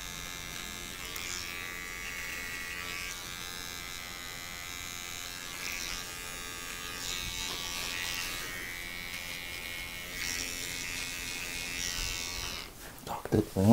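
An electric hair clipper buzzes steadily close by.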